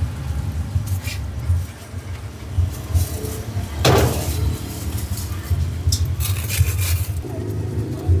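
Plastic bags rustle and crinkle up close.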